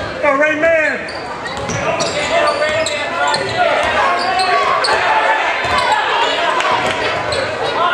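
A basketball bounces on the hardwood floor.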